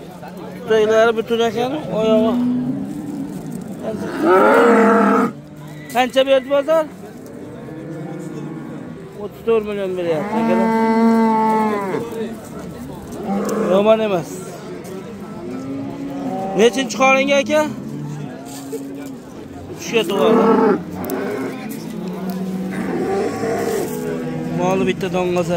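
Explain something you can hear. Several men talk loudly and with animation close by, outdoors.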